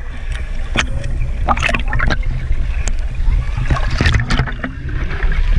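Water gurgles and bubbles underwater, muffled and close.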